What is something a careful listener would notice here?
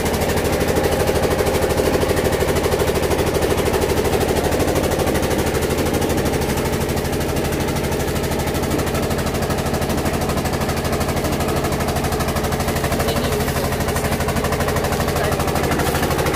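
An engine chugs loudly and steadily close by.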